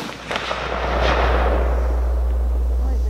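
A rifle shot booms and echoes across open ground.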